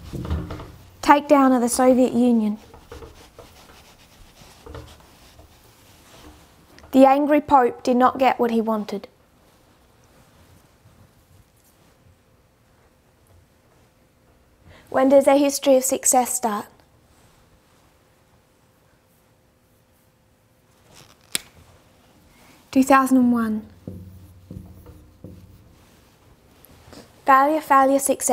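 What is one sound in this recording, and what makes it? A woman speaks calmly and clearly into a close microphone.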